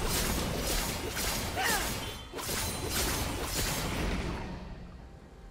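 Game spell effects whoosh and crackle in rapid bursts.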